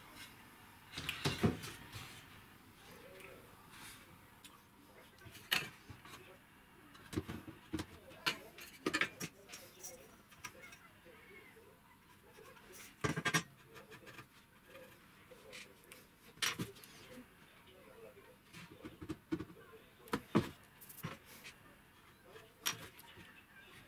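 Wooden boards knock and clatter against a workbench.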